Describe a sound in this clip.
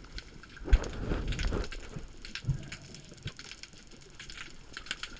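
Muffled water surges and crackles all around underwater.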